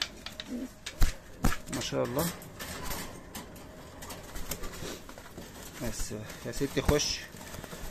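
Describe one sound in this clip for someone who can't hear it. A wire cage rattles as a hand reaches in.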